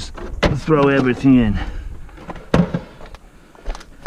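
A plastic tool case knocks and rattles as it is handled.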